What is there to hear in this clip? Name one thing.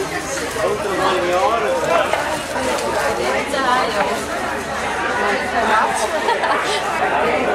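Hands crinkle and rustle cellophane bags.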